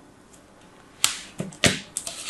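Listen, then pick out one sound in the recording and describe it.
Fingers press and pat sand in a plastic tray.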